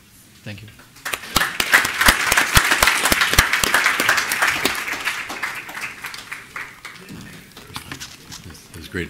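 An audience applauds loudly, then the applause fades.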